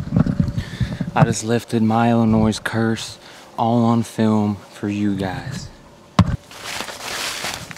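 A young man talks excitedly and breathlessly, close to the microphone.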